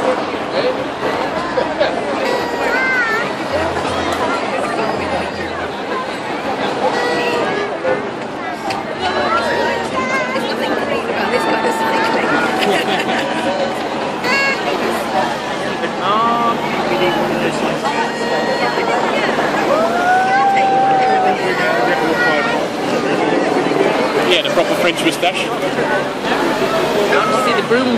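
A large crowd cheers, shouts and whistles nearby, outdoors.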